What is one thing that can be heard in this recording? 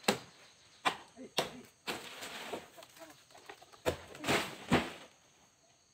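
A palm frond rustles and crashes to the ground.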